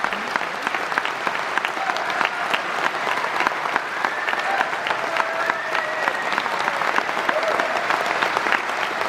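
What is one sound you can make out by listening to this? A keyboard plays a melody on stage.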